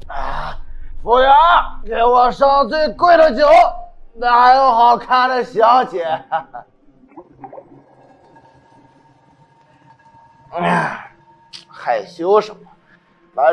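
A young man talks with exaggerated, drunken animation close by.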